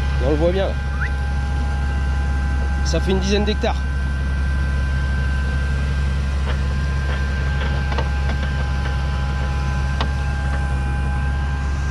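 A tractor engine drones steadily nearby.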